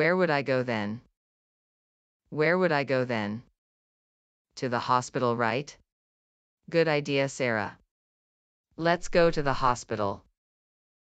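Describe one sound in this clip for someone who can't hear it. A young girl speaks in a synthetic voice.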